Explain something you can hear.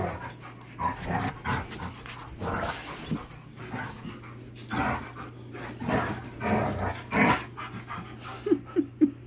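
Two dogs growl and snarl while play-fighting.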